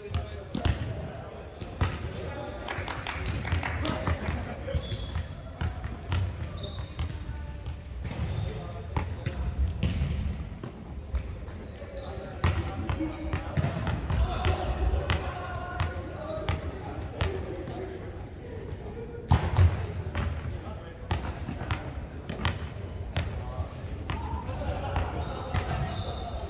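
A volleyball thuds off hands and bounces on a wooden floor in a large echoing hall.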